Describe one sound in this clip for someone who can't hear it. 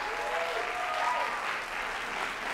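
A woman sings a held note through a large hall.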